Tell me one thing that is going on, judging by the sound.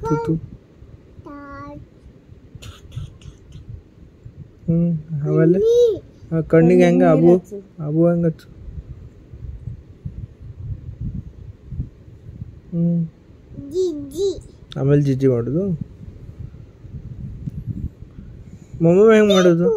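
A small child babbles and talks close by in short bursts.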